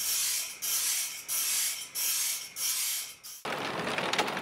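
A grinding wheel whirs in short, repeated bursts against metal.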